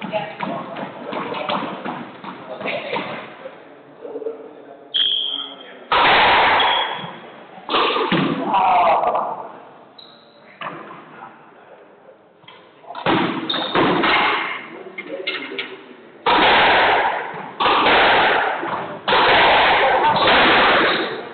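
A squash ball smacks sharply against the walls and rackets.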